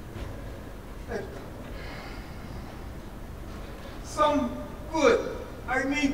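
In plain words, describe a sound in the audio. A man speaks loudly on a stage through a microphone, in a large echoing hall.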